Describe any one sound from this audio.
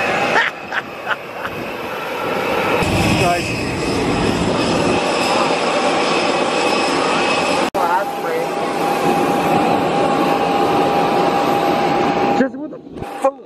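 A jet engine roars and whines loudly nearby, outdoors.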